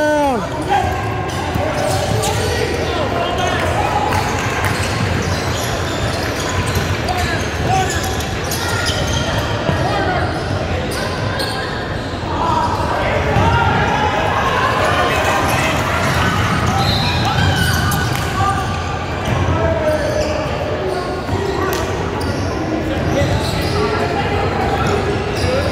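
Basketball sneakers squeak sharply on a wooden floor in a large echoing gym.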